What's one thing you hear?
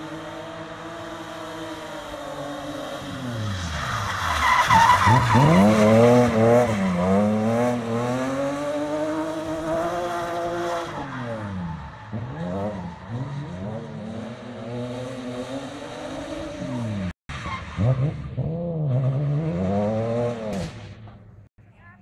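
A car engine revs hard and rises and falls in pitch, close by, then farther off.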